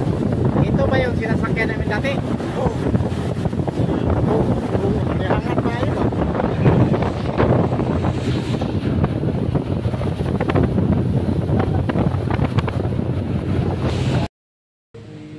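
Wind rushes loudly past a boat as the boat speeds over water.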